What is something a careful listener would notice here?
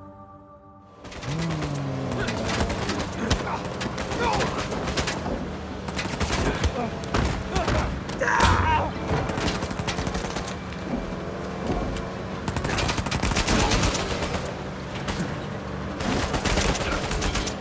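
A truck engine roars steadily.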